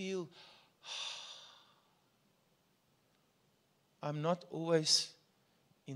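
A man speaks with feeling into a microphone, heard through loudspeakers in an echoing room.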